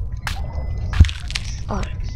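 A sharp chomp sounds once as a fish bites.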